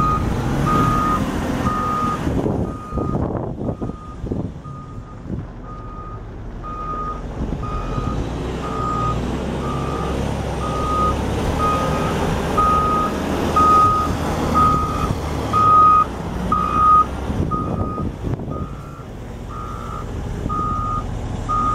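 A loader's reversing alarm beeps steadily.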